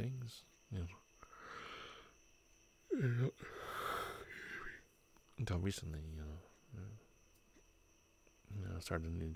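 A young man talks casually over an online voice chat.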